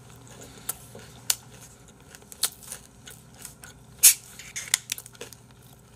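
A plastic bottle cap clicks as it is twisted open.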